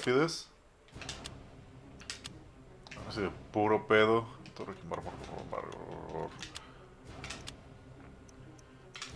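Short menu clicks sound as selections change.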